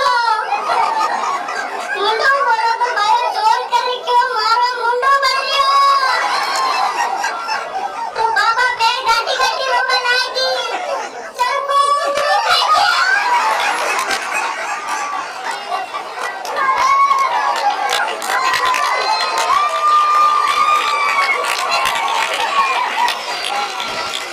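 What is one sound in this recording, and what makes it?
A man recites animatedly into a microphone.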